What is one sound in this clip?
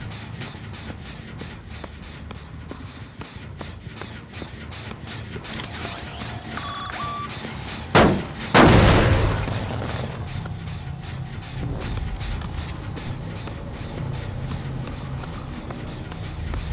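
Heavy footsteps thud steadily on a hard floor.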